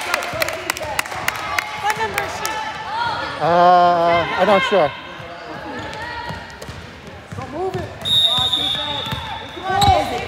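Young girls call out to each other across the gym.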